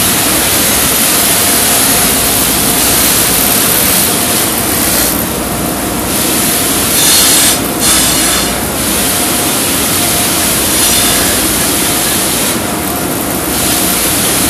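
A bench grinder whirs.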